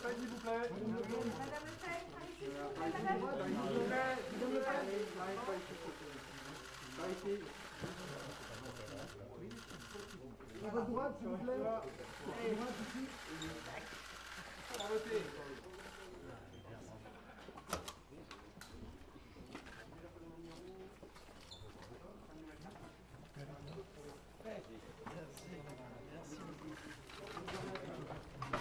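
A crowd of people murmurs in the background.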